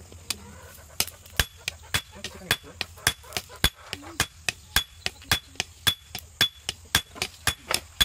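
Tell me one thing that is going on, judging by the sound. A hammer strikes hot metal on an anvil in a quick, steady rhythm, ringing sharply.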